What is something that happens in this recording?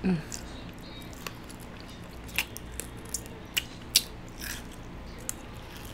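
A young woman crunches and chews food close to a microphone.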